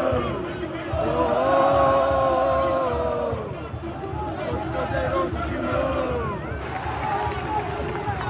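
A large stadium crowd chants and sings loudly together.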